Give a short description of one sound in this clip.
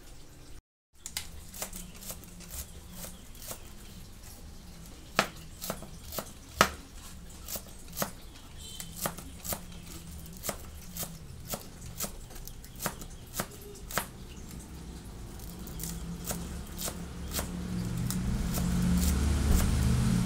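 A knife chops vegetables on a plastic cutting board in quick, sharp taps.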